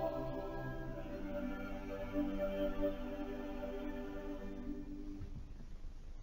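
A choir sings together in a large echoing church.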